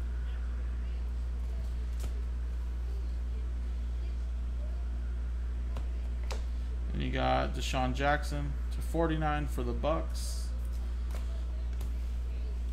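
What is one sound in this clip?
Trading cards rustle and tap as hands shuffle them.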